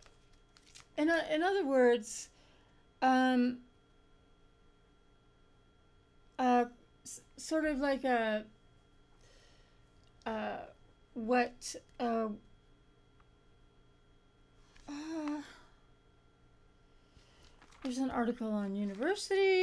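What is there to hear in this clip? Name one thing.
A middle-aged woman speaks close to a microphone, reading out in short bursts with pauses.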